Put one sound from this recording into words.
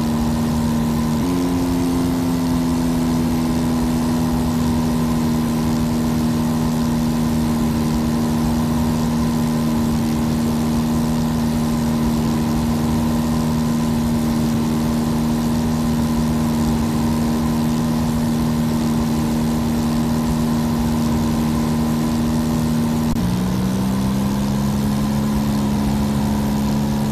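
A small propeller plane's engine drones steadily, changing pitch slightly twice.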